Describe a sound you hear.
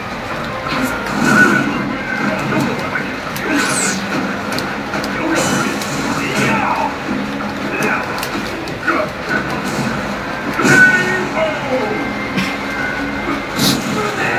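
Fiery blasts whoosh and crackle.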